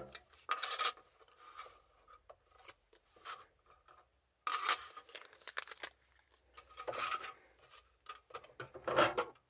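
Paper and card rustle and slide as hands handle them.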